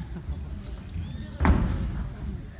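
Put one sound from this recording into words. Dancers' feet thud on a stage floor.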